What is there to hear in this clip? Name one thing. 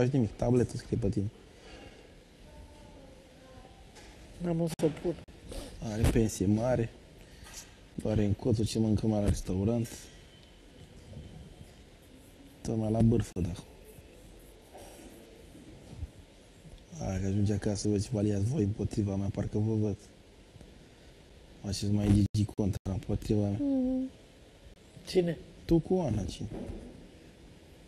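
A man talks calmly nearby.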